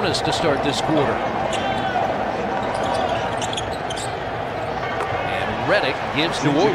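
A large indoor crowd murmurs steadily in an echoing arena.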